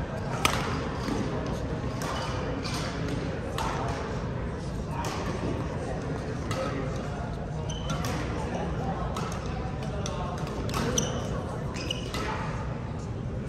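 Shoes squeak on a hard floor.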